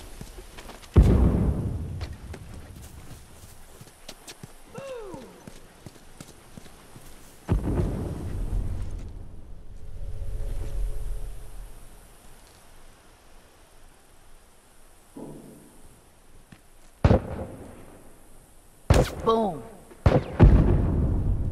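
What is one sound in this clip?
Gunshots crack sharply nearby.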